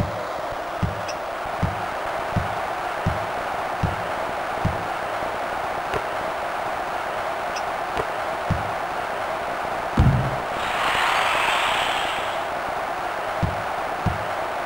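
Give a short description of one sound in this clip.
A basketball bounces with steady low thuds.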